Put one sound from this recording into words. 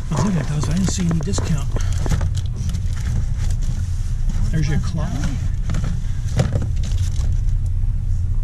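A cardboard box rustles as it is handled.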